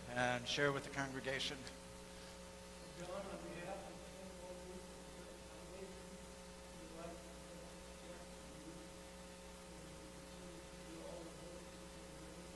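A man speaks through a microphone in a large echoing room.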